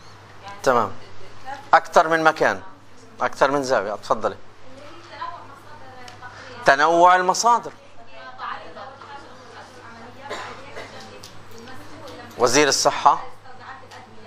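A woman speaks loudly and with animation.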